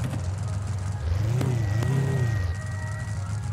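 A car engine revs up twice and settles back.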